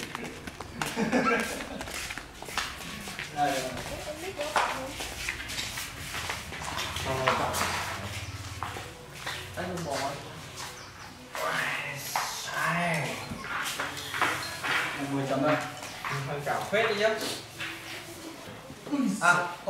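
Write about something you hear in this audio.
Young men talk with each other close by.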